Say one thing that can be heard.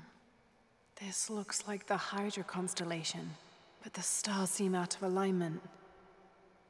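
A young woman speaks calmly and thoughtfully.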